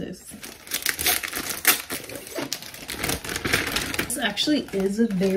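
Paper and fabric wrappers crinkle and rustle in hands.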